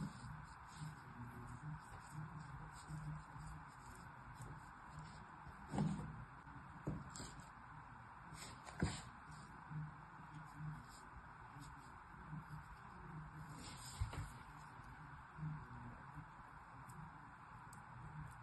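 Kinetic sand crunches softly as fingers press it into a plastic mould.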